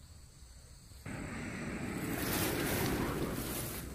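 Leaves rustle as a hand brushes through a plant.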